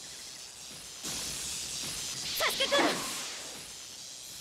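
Crackling energy hisses and roars.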